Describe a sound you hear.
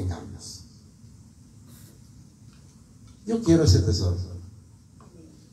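An elderly man speaks with animation into a microphone, heard through loudspeakers.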